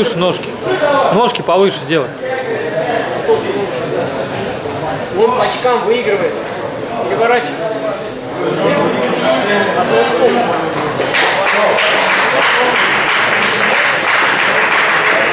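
A crowd of young people shouts and cheers in an echoing hall.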